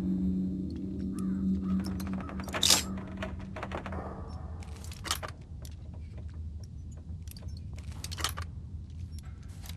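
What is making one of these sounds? Metal lock picks click and scrape inside a lock.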